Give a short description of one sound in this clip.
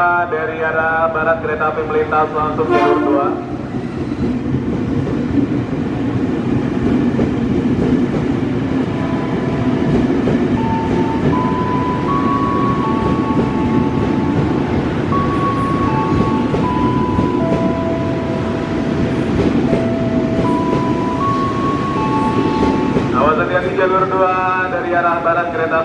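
Electric train motors whine with a rising, stepped pitch.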